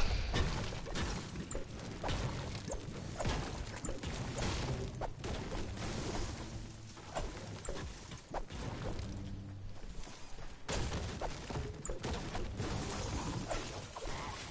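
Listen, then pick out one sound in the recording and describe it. A pickaxe strikes rock and wood with sharp knocks.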